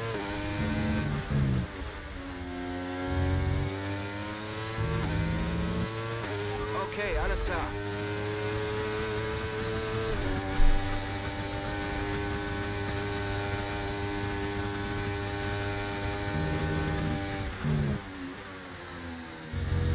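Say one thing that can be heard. A racing car engine whines loudly, rising and falling as the gears shift.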